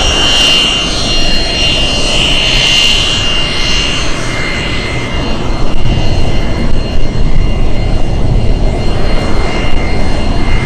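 A jet engine whines loudly as a plane taxis past.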